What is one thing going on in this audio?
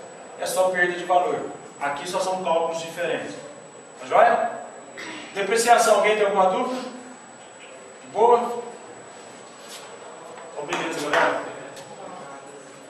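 A man lectures calmly, close by.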